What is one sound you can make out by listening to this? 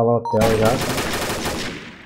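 Gunfire bursts from a game.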